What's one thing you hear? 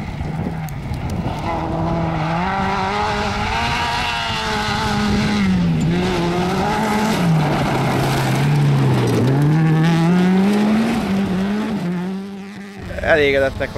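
Gravel sprays and crunches under a car's tyres.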